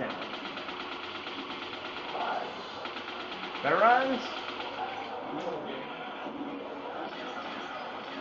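Video game sounds play from a television speaker.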